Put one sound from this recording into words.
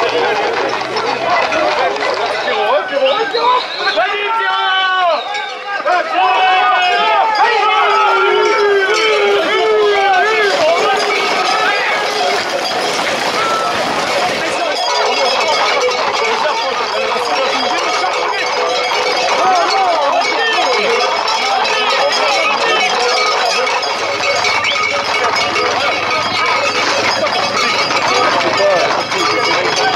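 A crowd of men and women shouts and whistles outdoors.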